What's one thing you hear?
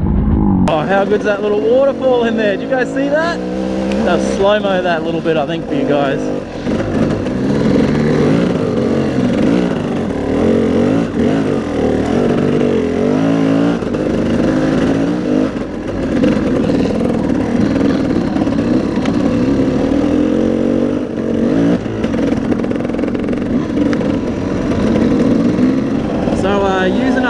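Other dirt bike engines whine and rev nearby.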